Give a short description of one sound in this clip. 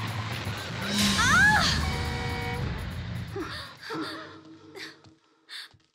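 A young woman sobs and gasps close by.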